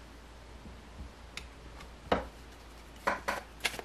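A playing card slides softly across a cloth.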